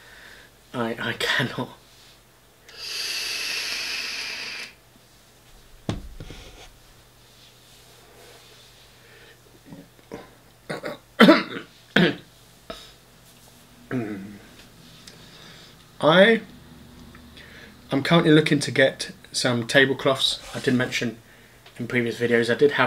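A middle-aged man talks casually, close by.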